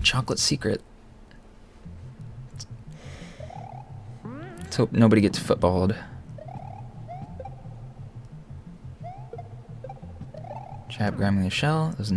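Short rising video game jump sounds chirp now and then.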